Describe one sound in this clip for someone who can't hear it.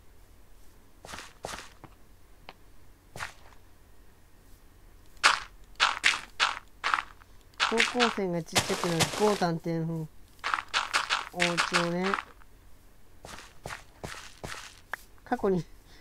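Blocks of dirt thud softly as they are placed.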